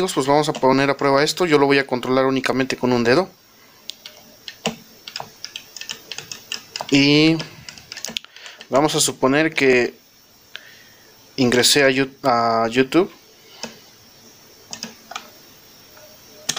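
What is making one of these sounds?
Plastic arcade buttons click under quick finger presses.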